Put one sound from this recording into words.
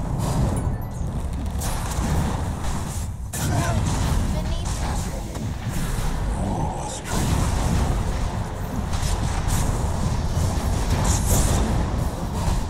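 Game battle effects clash, crackle and whoosh as spells hit.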